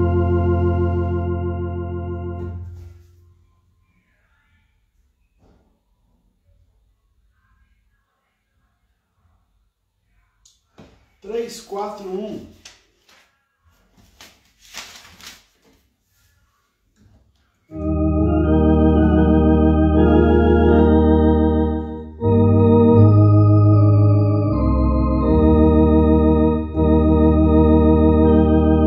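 An electric organ plays sustained chords.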